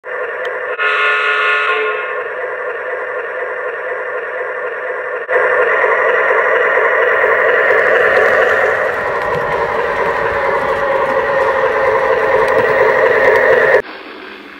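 Model train wheels rumble and click along the track.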